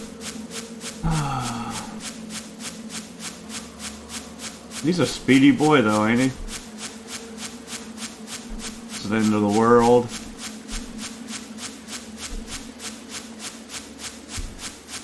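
Footsteps crunch steadily over grass.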